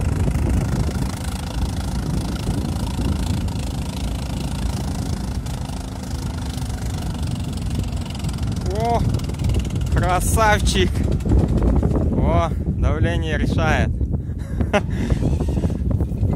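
An off-road vehicle's engine rumbles as it drives through water.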